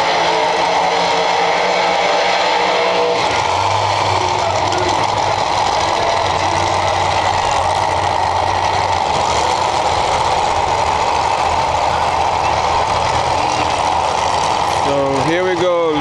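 A drag racing engine roars loudly.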